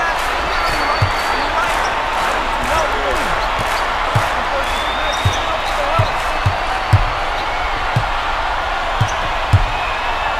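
A basketball bounces on a wooden court in a steady dribble.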